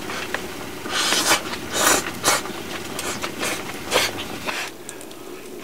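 A pot bubbles and hisses on a stove.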